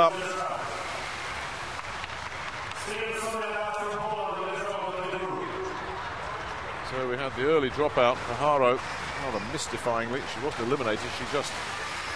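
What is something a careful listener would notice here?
Inline skates roll and whir on a smooth track.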